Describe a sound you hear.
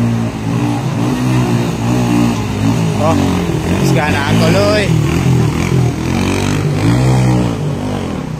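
A motorcycle engine revs loudly through water.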